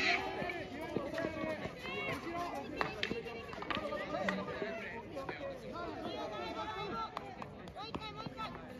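A field hockey stick strikes a ball with sharp clacks.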